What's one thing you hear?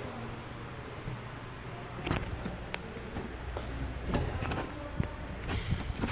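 A glass door is pushed open.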